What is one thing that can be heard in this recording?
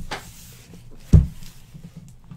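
A cardboard box thuds onto a table.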